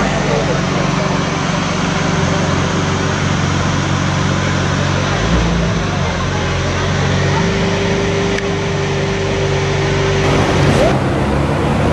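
A sports car engine idles with a deep rumble.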